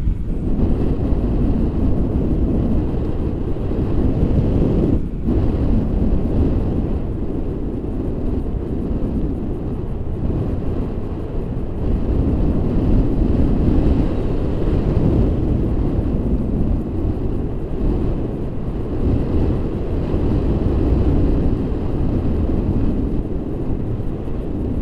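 Strong wind roars and buffets a microphone throughout.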